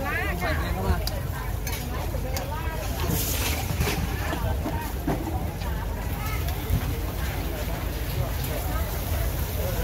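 Many people chatter in the background.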